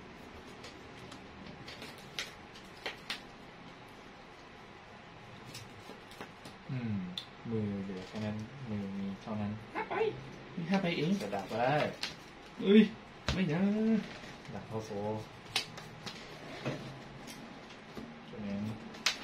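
Playing cards tap and slide on a table mat.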